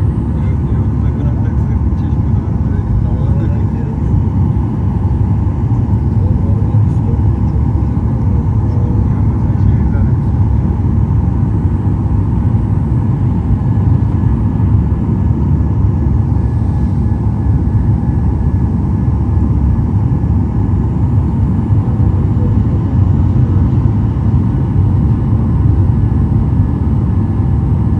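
Jet engines roar loudly and steadily as an airliner climbs.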